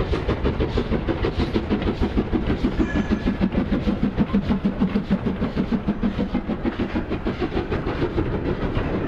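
A model steam locomotive chuffs rhythmically as it passes close by.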